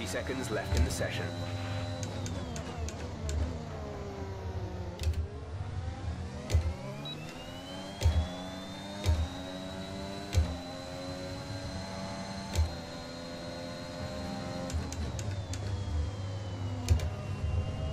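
A racing car's gearbox thumps sharply with each gear change.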